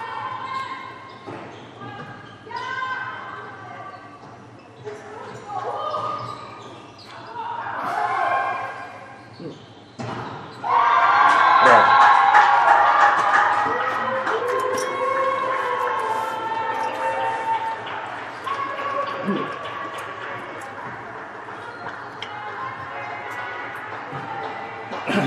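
Young women shout to each other in a large echoing hall.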